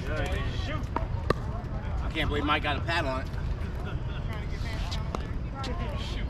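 Paddles pop sharply against a plastic ball.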